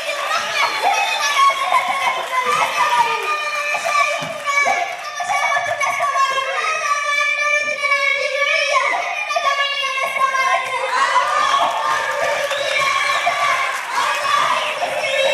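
A young boy sings into a microphone through loudspeakers in a large echoing hall.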